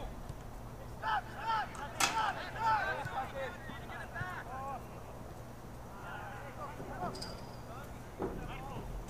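Teenage players shout to each other across an open field, heard from a distance.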